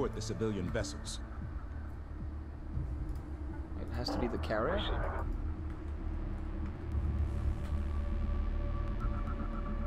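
A large spaceship's engines rumble with a deep, steady drone.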